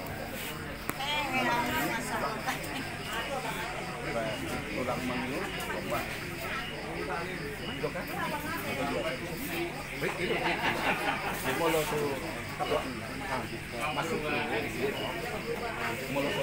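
A man chants loudly over the crowd.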